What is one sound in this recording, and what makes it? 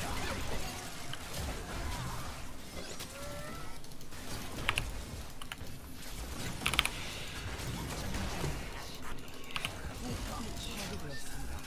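Magic spells zap and crackle in a fast fantasy battle.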